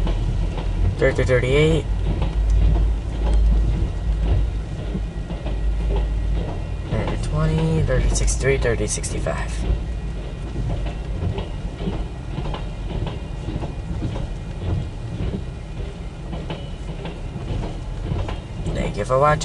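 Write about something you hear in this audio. Windshield wipers sweep across the glass now and then.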